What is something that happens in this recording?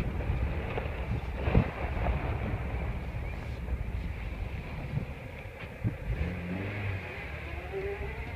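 A car rolls over dirt, heard from inside.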